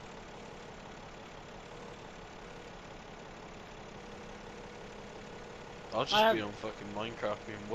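An excavator engine idles with a low, steady hum.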